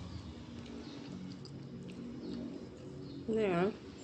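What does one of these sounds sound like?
A young woman chews food with smacking lips.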